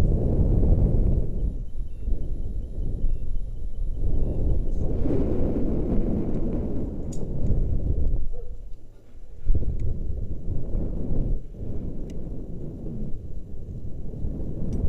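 Wind buffets and rushes past loudly outdoors.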